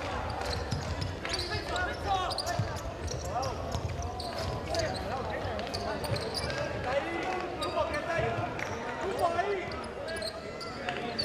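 A large crowd cheers and chants in an echoing indoor hall.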